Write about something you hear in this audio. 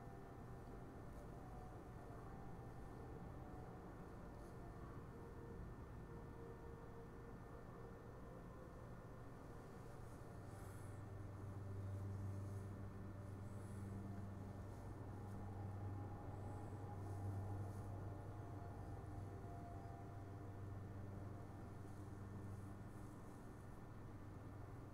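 Spaceship engines rumble in a low, steady drone.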